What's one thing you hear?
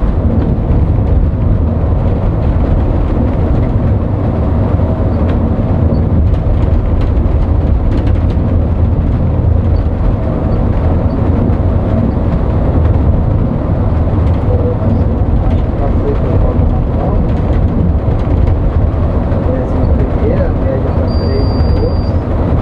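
Tyres roar on the road.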